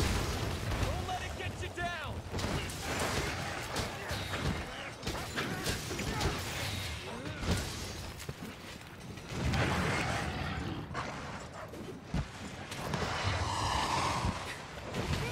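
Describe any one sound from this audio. A sword slashes and clangs against a monster's hide.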